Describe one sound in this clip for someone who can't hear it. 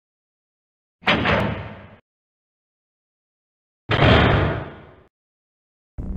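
A heavy metal door slides open with a loud rumble.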